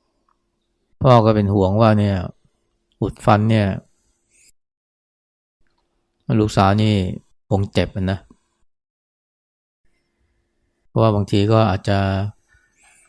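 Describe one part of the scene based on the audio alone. An elderly man speaks calmly in short phrases, close to a microphone.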